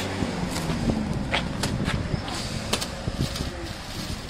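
Plastic wrapping rustles and crinkles as it is handled.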